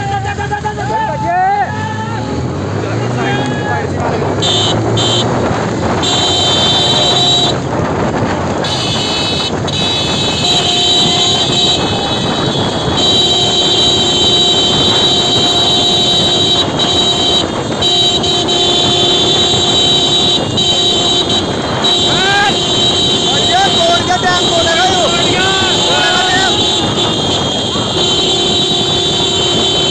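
A motorcycle engine runs close by.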